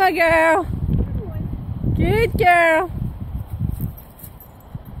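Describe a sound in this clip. Leaves and grass rustle as a dog pushes through them.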